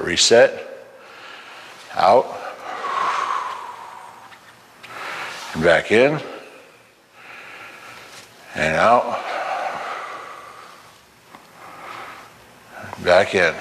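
A man lets out loud, echoing cries in bursts.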